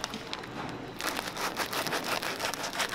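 A knife saws through a crusty bread roll with a crackle.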